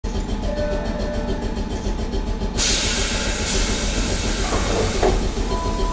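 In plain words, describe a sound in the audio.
A train idles with a low steady hum.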